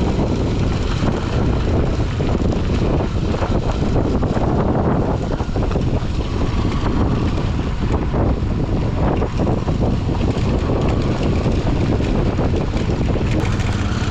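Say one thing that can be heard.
A motorcycle engine runs steadily close by.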